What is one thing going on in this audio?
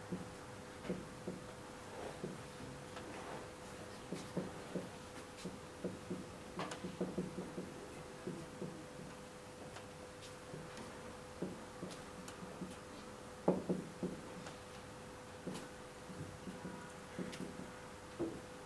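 A marker squeaks and taps against a whiteboard.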